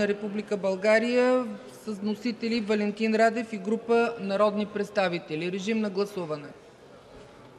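A middle-aged woman speaks steadily into a microphone in a large echoing hall.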